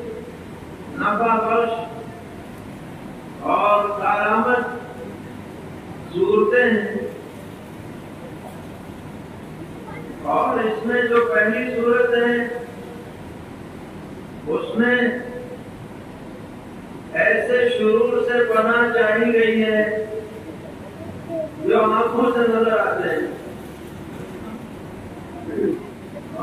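An elderly man speaks slowly in short phrases through a microphone, with pauses between them.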